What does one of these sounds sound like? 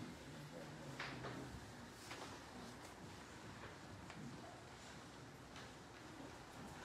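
Footsteps knock on a wooden floor in an echoing hall.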